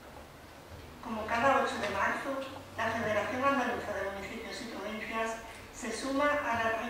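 A young woman reads out calmly through a microphone.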